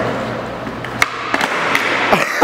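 A skateboard clacks as it hits the floor.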